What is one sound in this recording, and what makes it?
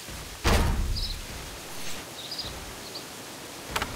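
A blade strikes a creature with a heavy thud.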